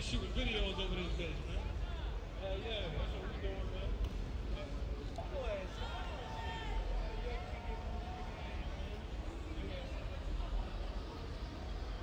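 A crowd of young men and women chatters outdoors on a busy street.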